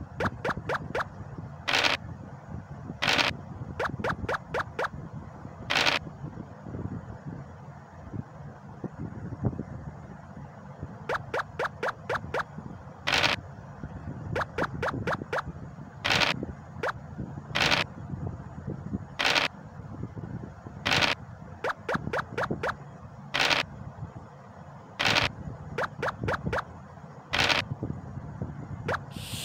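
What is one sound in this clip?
Game pieces click as they hop along the board.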